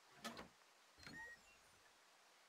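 A wooden box lid creaks open.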